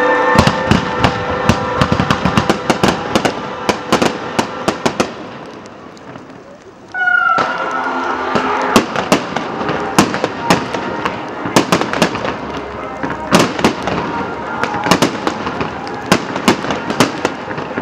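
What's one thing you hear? Fireworks bang and crackle loudly outdoors.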